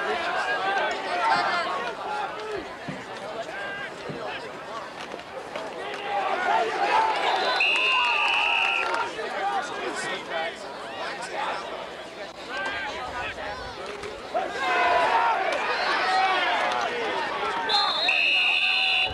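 Young men shout and cheer outdoors.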